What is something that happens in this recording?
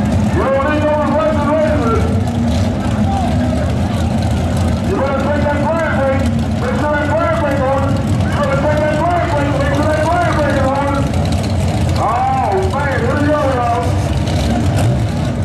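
Race car engines rumble loudly nearby.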